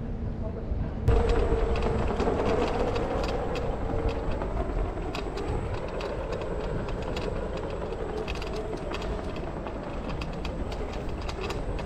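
Wind rushes past while riding, blustering over the sound.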